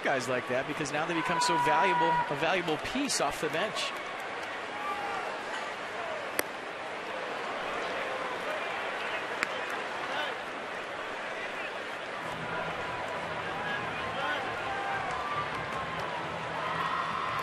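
A baseball stadium crowd murmurs outdoors.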